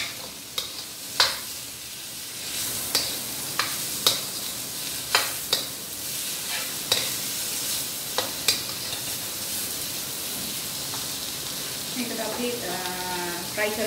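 A spatula scrapes and knocks against a metal wok.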